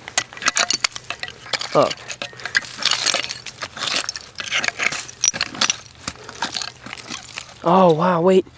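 A hand tool scrapes and digs into dry soil and leaves.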